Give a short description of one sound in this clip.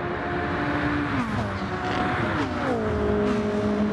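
An engine shifts gears, its pitch dropping sharply.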